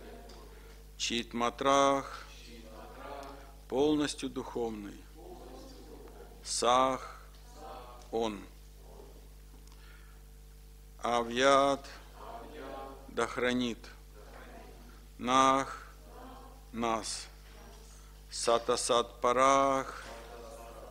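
A middle-aged man reads aloud calmly into a microphone, in short phrases with pauses.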